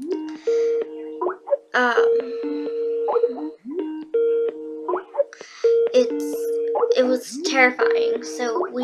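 A young woman talks close to the microphone with animation.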